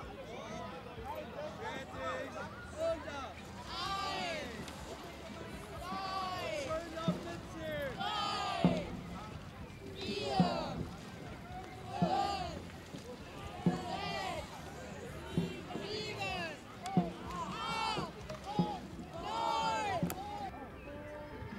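A group of young people shout together in a steady rhythm.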